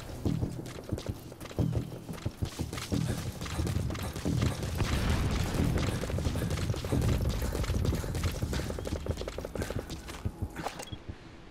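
Footsteps run quickly through rustling grass.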